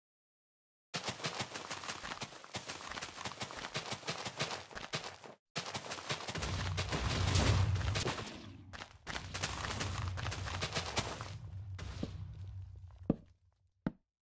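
Explosions boom and crackle in rapid succession, with a deep rumble.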